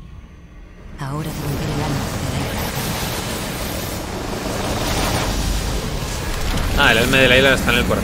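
A loud rushing blast bursts out and roars on.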